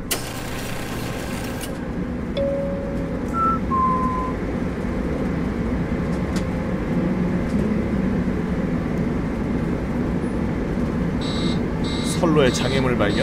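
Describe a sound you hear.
A deep mechanical rumble drones steadily.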